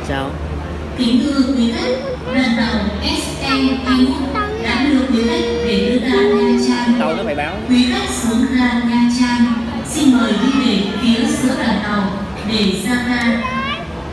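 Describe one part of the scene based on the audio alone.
A young woman talks with a clerk nearby.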